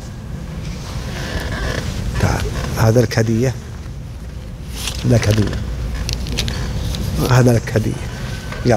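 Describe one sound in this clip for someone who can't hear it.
A middle-aged man speaks calmly into a microphone, heard through a loudspeaker in an echoing hall.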